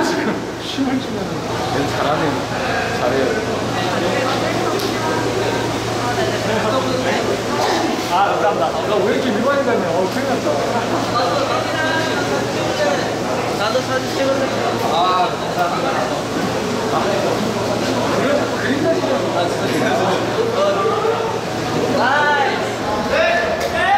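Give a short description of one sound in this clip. Young men talk with animation close by.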